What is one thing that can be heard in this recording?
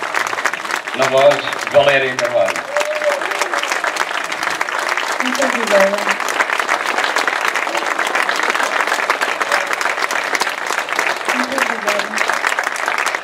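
A man speaks loudly over the applause.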